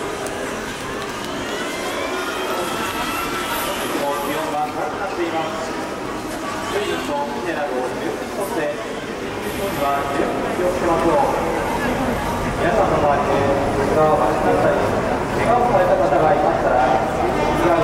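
A large outdoor crowd murmurs and chatters along a street.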